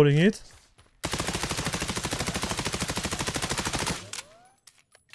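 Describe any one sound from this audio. A gun fires rapidly in a long burst.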